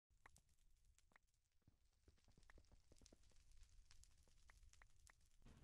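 A block cracks with quick, repeated taps as it is broken in a game.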